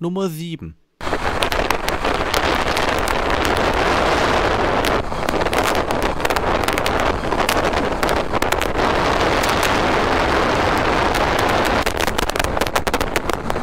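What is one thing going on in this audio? Wind roars past a fast-moving motorcycle.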